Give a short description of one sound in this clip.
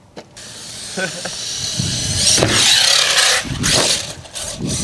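Toy car tyres crunch and rattle over dirt and gravel.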